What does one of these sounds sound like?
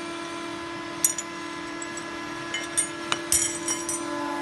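Metal parts clank sharply a few times.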